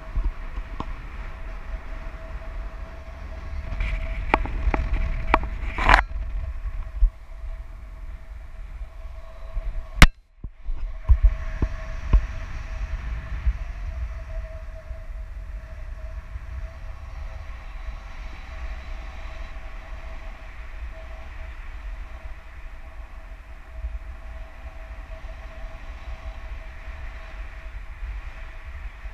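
Wind rushes steadily past, buffeting loudly.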